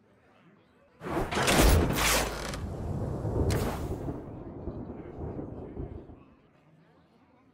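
A game plays a loud crashing defeat effect with booming music.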